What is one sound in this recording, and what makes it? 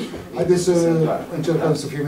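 A middle-aged man talks on a phone.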